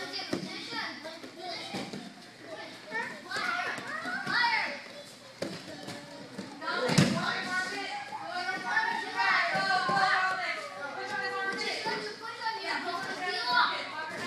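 Young children chatter and shout in a large echoing hall.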